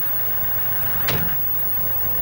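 A vehicle door slams shut.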